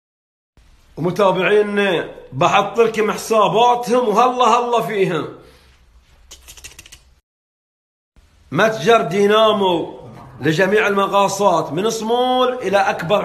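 A man speaks with animation, close to a phone microphone.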